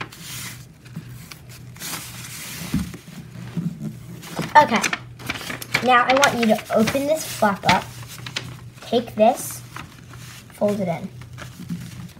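Paper rustles and creases as it is folded.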